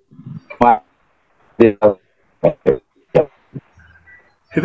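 A group of men laugh over an online call.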